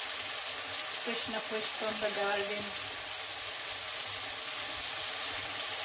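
Food sizzles steadily in a hot frying pan.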